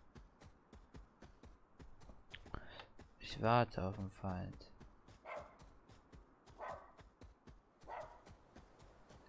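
Footsteps run quickly over grass.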